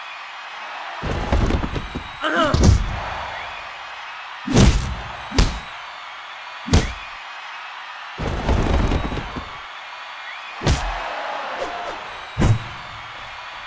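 Heavy punches land with dull, booming thuds.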